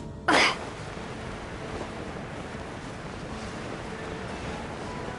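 Wind rushes steadily past a glider in flight.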